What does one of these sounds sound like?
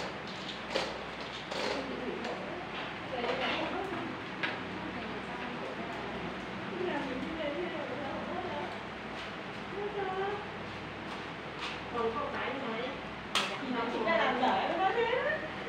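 Thin aluminium from a cut drink can crinkles in hands.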